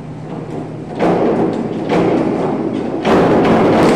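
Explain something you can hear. A diving board thumps and rattles as a diver springs off.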